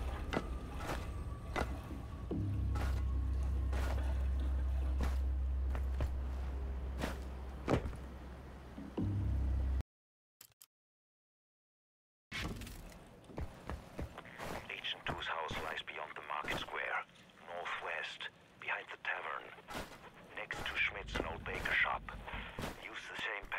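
Footsteps knock on wooden ladder rungs.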